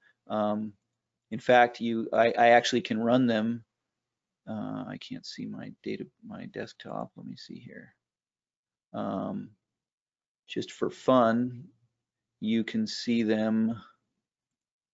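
A man speaks calmly into a microphone, heard as if over an online call.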